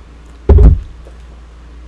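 A thump sounds close by as a book is moved.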